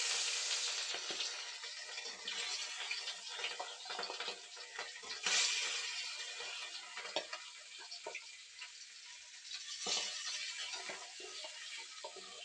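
A metal spatula scrapes and clicks against a pan.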